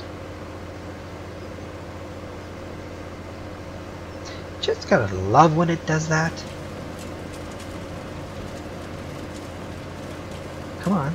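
A diesel engine hums steadily.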